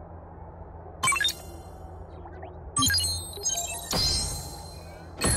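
A bright chime and a whoosh ring out as a purchase completes.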